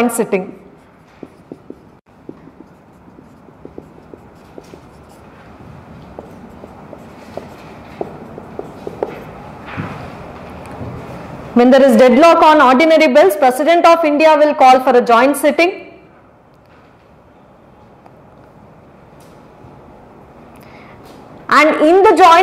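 A young woman speaks calmly into a microphone, as if lecturing.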